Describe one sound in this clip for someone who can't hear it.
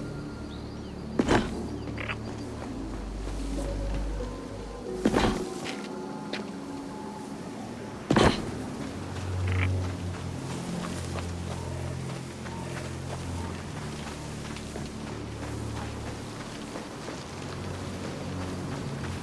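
Footsteps rustle through dry grass and dirt.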